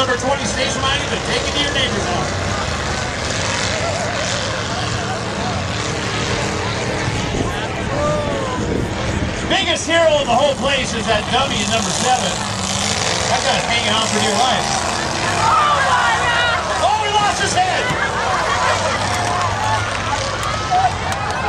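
Car engines roar as cars race around a dirt track.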